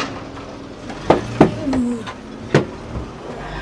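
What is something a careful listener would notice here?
A door latch clicks.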